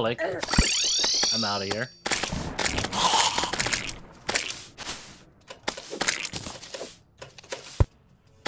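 Electronic game sound effects zap, chime and clink in quick bursts.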